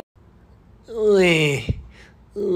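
A man makes a loud, wailing cry, close by.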